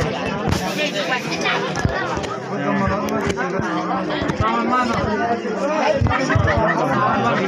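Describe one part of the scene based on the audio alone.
A crowd of men and women talk and chatter nearby outdoors.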